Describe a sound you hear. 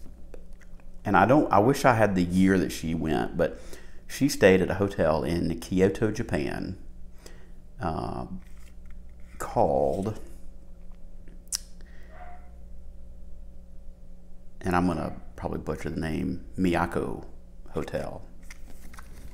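A middle-aged man talks calmly, close to the microphone, in pauses.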